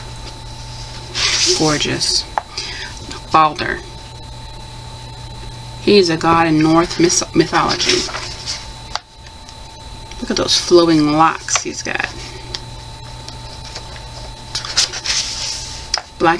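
Book pages rustle as they are turned by hand.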